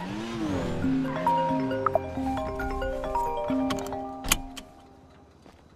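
A phone rings with a repeating electronic tune.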